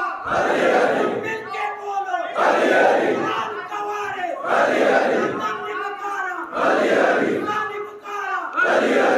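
A man preaches loudly and passionately into a microphone, his voice ringing through loudspeakers.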